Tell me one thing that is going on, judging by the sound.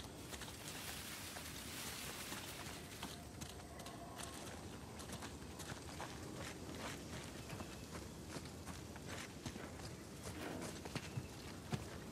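Leaves rustle as a man pushes through dense plants.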